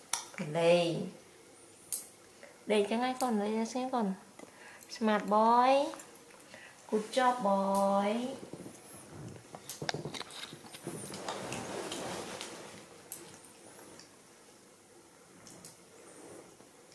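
Nail clippers click sharply.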